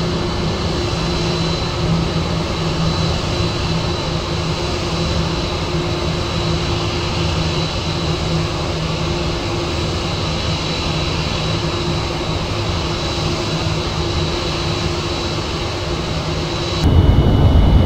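A jet engine roars steadily with a high whine.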